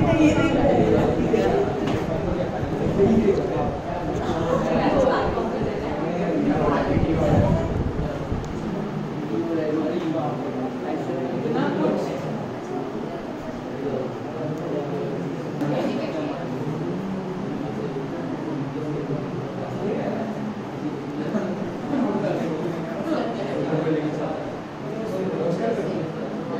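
Children chatter and murmur softly nearby.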